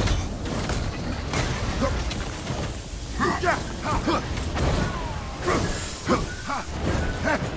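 Electricity crackles and buzzes in loud bursts.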